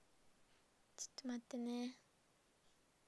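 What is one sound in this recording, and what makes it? A young woman briefly makes a short, quiet sound with her voice, close to the microphone.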